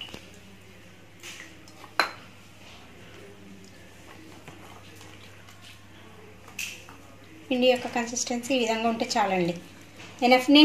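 Fingers press food into a bowl of dry crumbs with a soft rustle.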